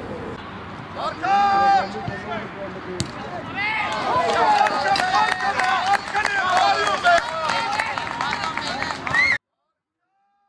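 Young boys shout and call out across an open field.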